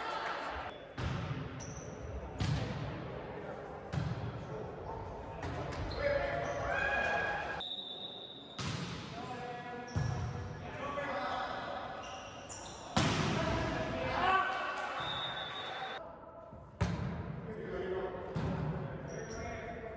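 A volleyball is struck with sharp slaps that echo through a large hall.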